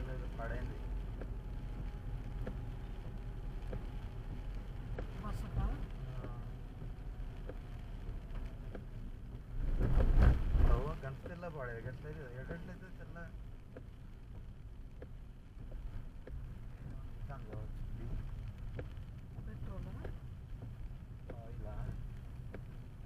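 A car engine hums steadily from inside.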